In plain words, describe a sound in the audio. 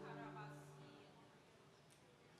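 A band's final chord rings out through a large hall and fades away.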